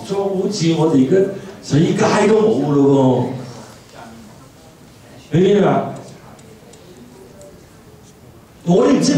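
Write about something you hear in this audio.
A middle-aged man sings loudly through a microphone, in short phrases with pauses.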